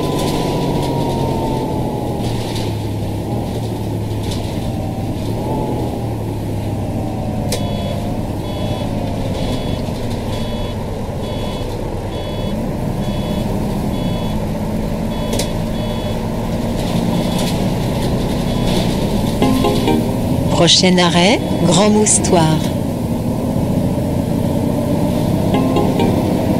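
A bus engine hums steadily, its pitch rising and falling with speed.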